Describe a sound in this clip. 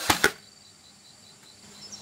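A nail gun fires a sharp shot into wood.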